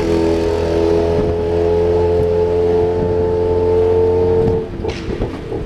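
A motorbike engine hums close by.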